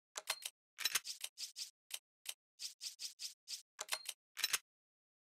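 Short game menu blips sound in quick succession.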